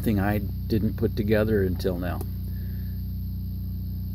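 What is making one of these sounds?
A finger presses a small button with a soft click.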